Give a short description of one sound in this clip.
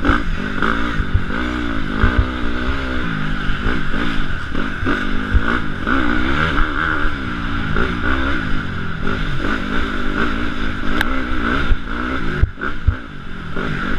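Bicycle tyres roll fast over a dirt trail.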